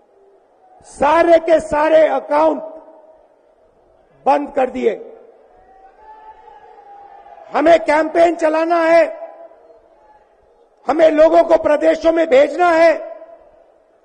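A man speaks forcefully into a microphone over loudspeakers, echoing outdoors.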